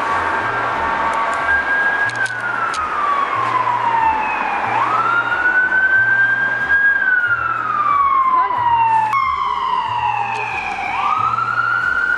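A siren wails loudly close by, rising and falling.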